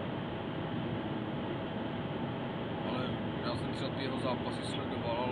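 Tyres roar steadily on a road.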